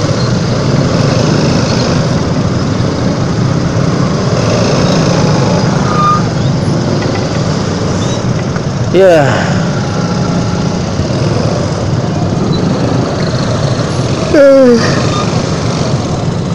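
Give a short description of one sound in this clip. Many motorcycle engines rumble steadily close by in slow traffic.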